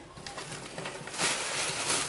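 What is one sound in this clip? Green beans rustle as they are handled.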